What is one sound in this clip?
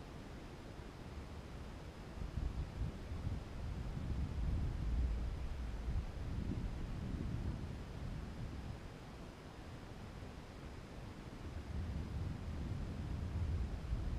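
Wind buffets and rumbles against the microphone in gusts.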